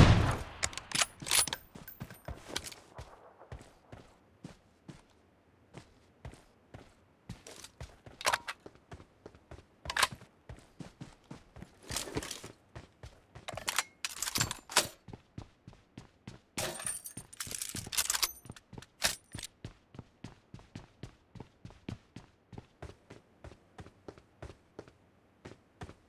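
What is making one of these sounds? Footsteps run quickly over hard ground and stairs.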